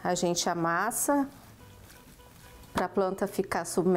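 A wooden spoon stirs greens in a metal pot.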